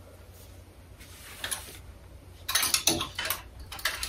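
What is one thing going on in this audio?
Clothes hangers rattle and fabric rustles on a rail.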